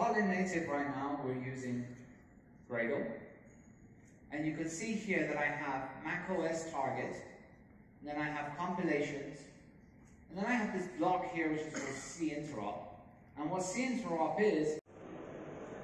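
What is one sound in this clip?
A man speaks calmly through a microphone over loudspeakers in a large hall.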